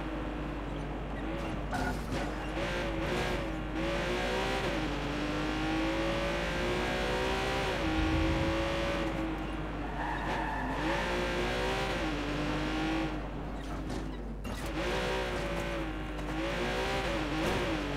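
A car engine revs up and down as a car races along a winding road.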